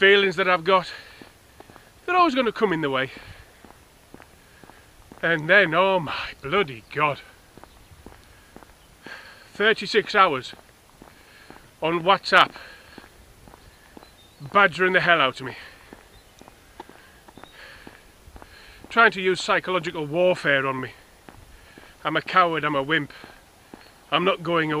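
A middle-aged man talks close to a microphone in short bursts, with pauses between.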